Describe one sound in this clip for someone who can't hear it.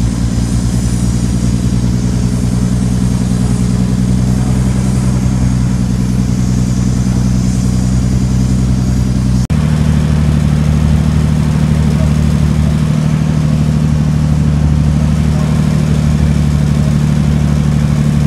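A heavy truck's diesel engine rumbles steadily close by.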